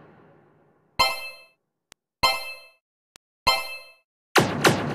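A small gun fires single ringing shots at a steady pace.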